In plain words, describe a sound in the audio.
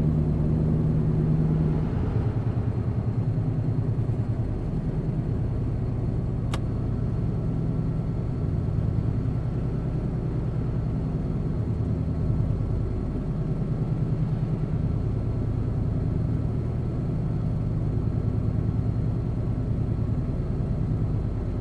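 A truck's diesel engine drones steadily at cruising speed.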